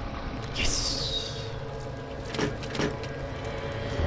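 A metal locker door clanks open.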